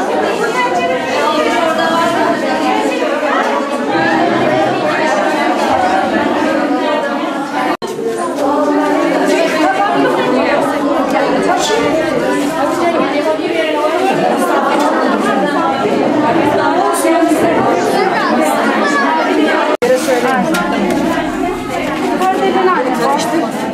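Many women chatter at once in a busy room.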